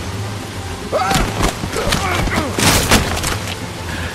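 A man tumbles down wooden stairs with heavy thuds.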